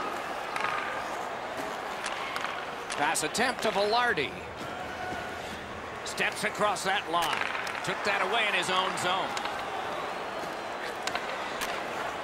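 Ice skates scrape and hiss on the ice.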